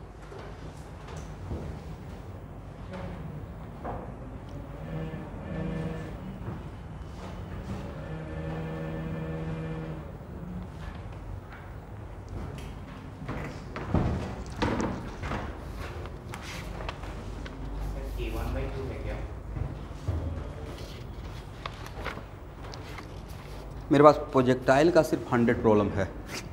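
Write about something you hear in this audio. A man speaks steadily, like a teacher explaining.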